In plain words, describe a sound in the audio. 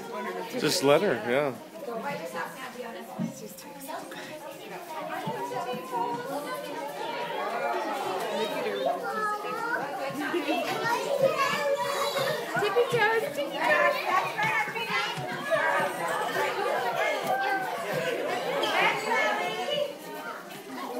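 Small children chatter and squeal in a large echoing room.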